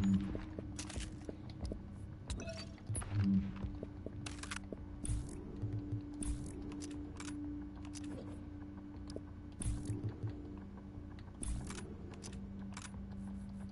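Short electronic clicks sound as menu items change.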